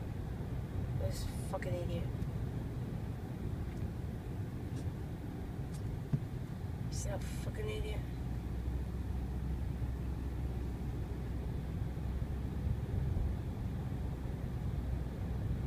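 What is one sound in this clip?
A car rumbles steadily along a road, heard from inside.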